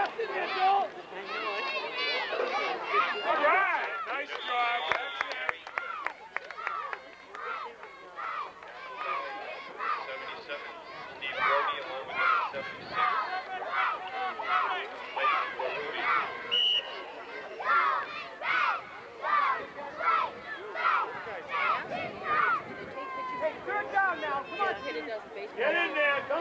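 A crowd of adults shouts and cheers nearby, outdoors.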